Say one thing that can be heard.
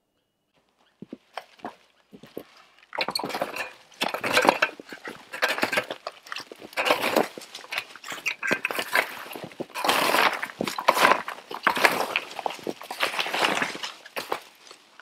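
A garden hoe scrapes and scratches through dry dirt and leaves in rhythmic strokes.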